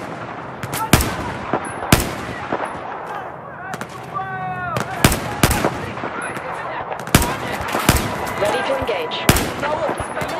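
A rifle fires single loud shots, one after another.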